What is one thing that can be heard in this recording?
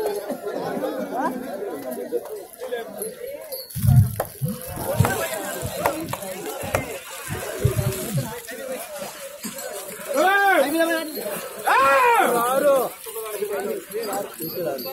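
A crowd of men talks and shouts nearby outdoors.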